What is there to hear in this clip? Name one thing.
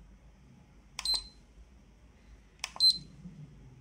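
A button on a handheld device clicks as it is pressed.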